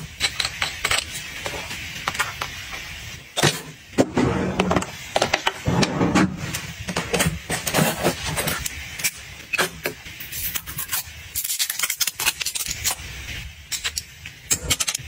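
Fingernails tap and click on plastic packaging.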